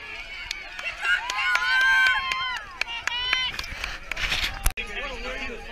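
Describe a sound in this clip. Spectators shout and cheer loudly as runners pass.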